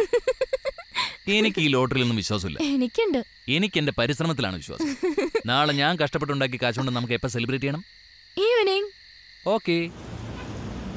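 A young woman laughs and talks softly.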